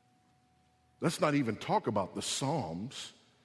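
A man speaks with emphasis, close and clear.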